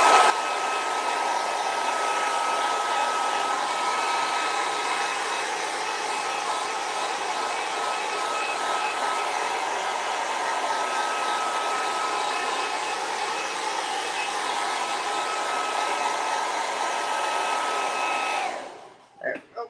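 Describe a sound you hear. A hot air blower whirs loudly and steadily, then switches off.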